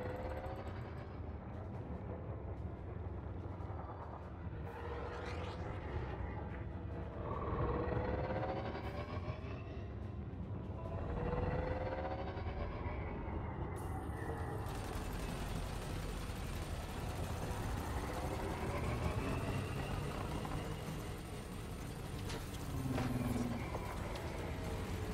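A spacecraft engine rumbles low and steadily, with whines that rise and fall.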